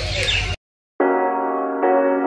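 Small birds chirp and twitter in a cage.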